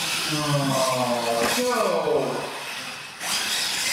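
A toy truck lands hard with a clatter.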